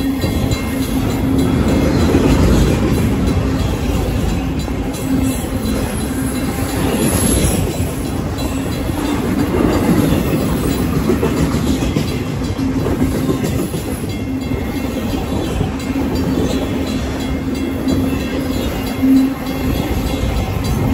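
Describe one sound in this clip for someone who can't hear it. Train wheels squeal steadily on the rails.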